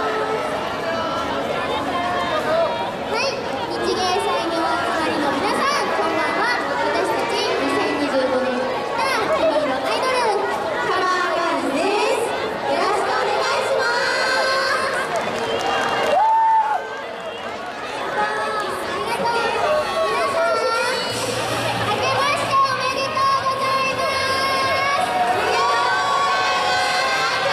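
A group of young women sing together through loudspeakers in a large echoing hall.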